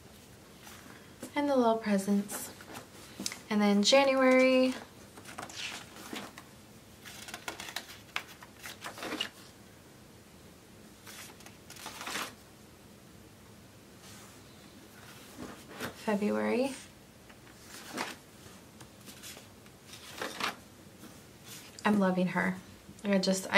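Paper pages rustle and flip as a planner is leafed through.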